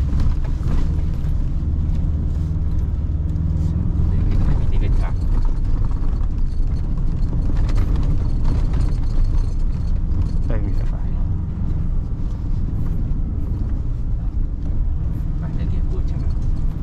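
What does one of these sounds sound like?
Tyres crunch and rumble over a rough dirt track.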